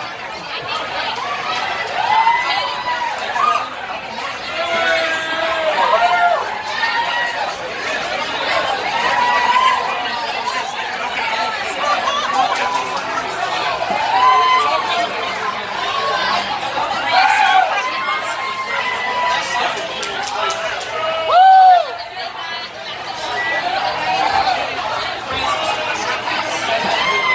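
A crowd cheers and chatters loudly in a lively room.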